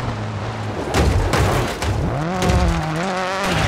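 A rally car crashes into another car with a heavy thud.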